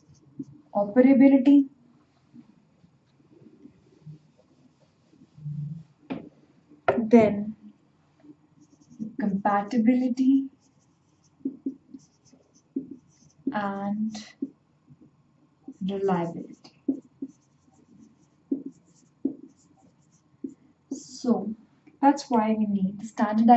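A young woman speaks calmly in short phrases, close to a microphone.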